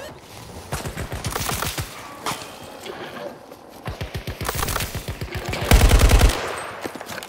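A scoped rifle fires.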